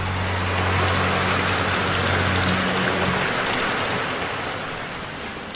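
Water pours and splashes heavily from above.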